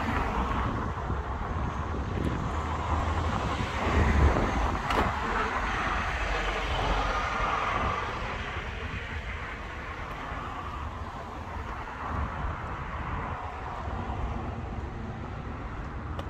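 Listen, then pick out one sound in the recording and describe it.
Traffic passes by on a nearby road with a steady rush of tyres.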